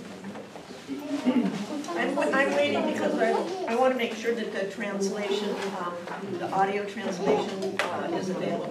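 A woman speaks with animation at some distance.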